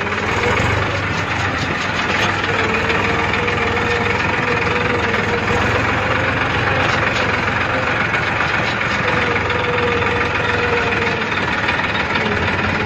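A tractor engine rumbles steadily close by.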